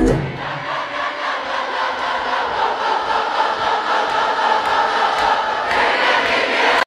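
A huge stadium crowd cheers and roars, echoing around a large arena.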